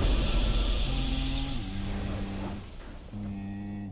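A short triumphant fanfare plays.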